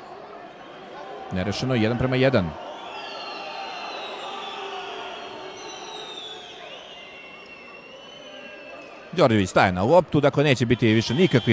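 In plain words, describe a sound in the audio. A large crowd murmurs in a big echoing hall.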